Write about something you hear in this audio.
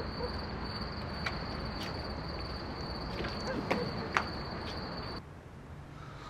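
Footsteps tap on cobblestones outdoors.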